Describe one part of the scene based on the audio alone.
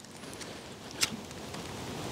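A lighter clicks as it is struck.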